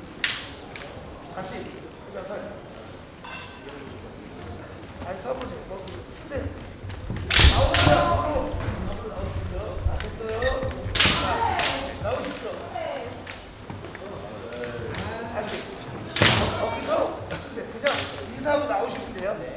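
Kendo fighters shout loudly in a large echoing hall.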